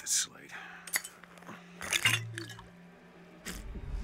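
A glass bottle clinks as it is picked up.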